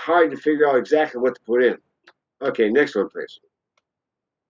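An older man speaks calmly into a microphone, heard through an online call.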